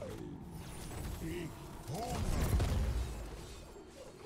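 Game characters clash with impacts and blasts.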